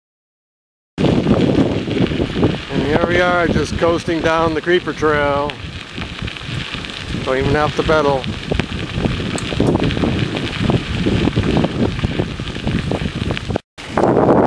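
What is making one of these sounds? Bicycle tyres rumble over a rough paved road.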